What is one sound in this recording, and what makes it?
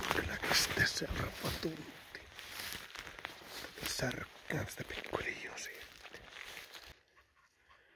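A man talks close up, calmly.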